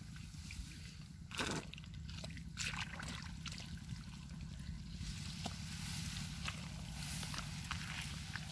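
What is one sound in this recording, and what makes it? Grass rustles as a person moves through it.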